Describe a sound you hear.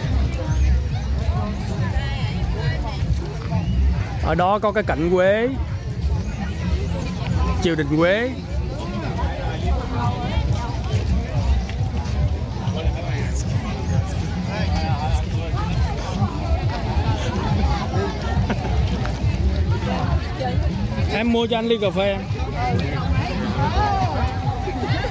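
A crowd of men and women chatters outdoors all around.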